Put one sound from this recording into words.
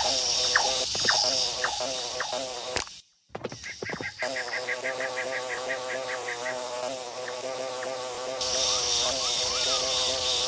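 A bee buzzes steadily as it flies.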